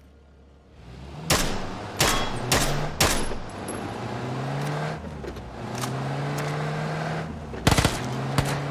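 A car engine revs and roars while driving.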